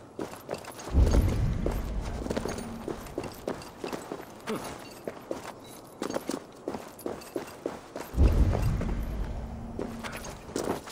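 A deep whoosh rumbles as a climber leaps up a cliff.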